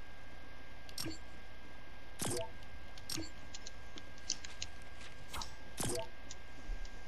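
Short game interface clicks and whooshes sound as a menu opens and closes.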